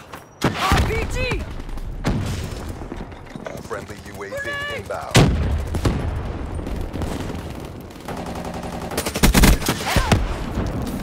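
Gunfire bursts out in loud, rapid shots.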